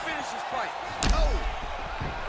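A fighter's kick lands with a sharp thud.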